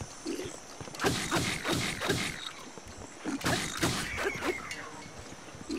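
Sword blows clash and strike rapidly.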